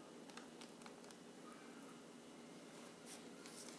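Thick liquid drizzles and splashes softly into a bowl.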